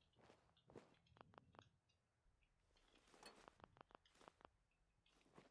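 Short sharp clicks sound as small items are picked up.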